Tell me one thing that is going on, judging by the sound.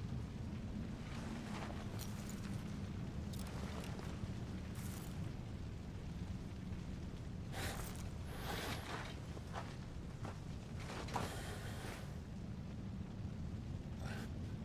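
A man speaks quietly in a low, rough voice.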